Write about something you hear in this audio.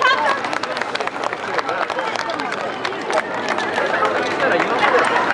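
Wooden hand clappers clack rapidly as a group of dancers moves.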